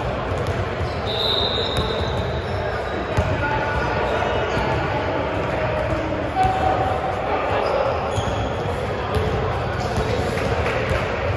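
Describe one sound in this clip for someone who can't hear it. A crowd of young people chatter and call out in a large echoing gym.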